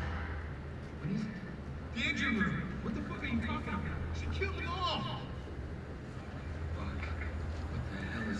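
A man asks questions in a tense voice nearby.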